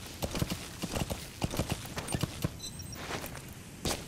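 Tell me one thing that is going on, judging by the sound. A horse's hooves thud on dirt.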